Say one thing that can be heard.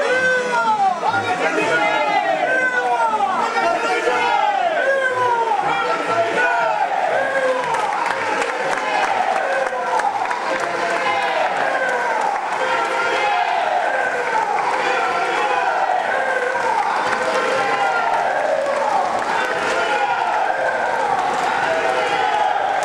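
A large crowd of men and women chants and sings loudly in an echoing hall.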